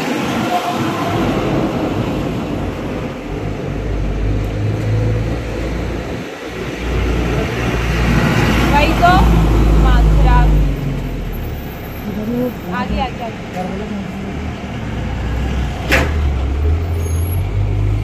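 Heavy trucks rumble past close by.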